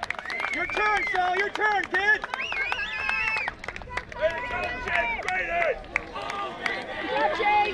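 A crowd of spectators cheers and chants loudly outdoors.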